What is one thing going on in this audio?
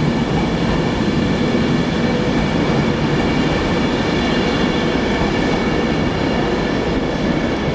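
A train rumbles and drones as it slowly pulls away.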